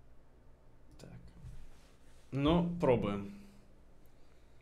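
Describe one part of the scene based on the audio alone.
A young man speaks briefly and casually into a close microphone.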